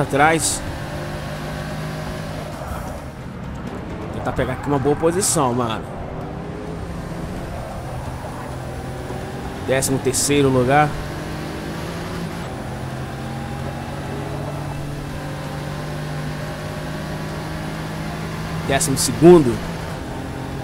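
A car engine revs up and down sharply as gears shift.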